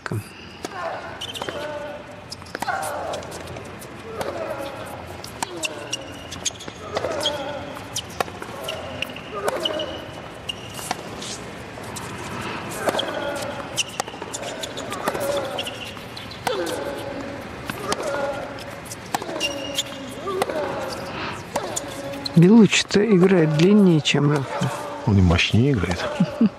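Tennis rackets strike a ball back and forth in a sharp, regular rally.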